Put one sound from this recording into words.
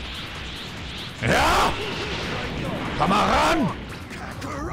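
A fiery energy blast roars.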